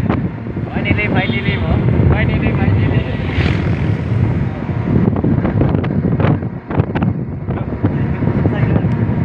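A small motor engine hums steadily while driving.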